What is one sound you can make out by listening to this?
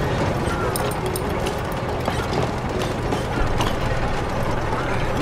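Heavy machine gears grind and clatter steadily.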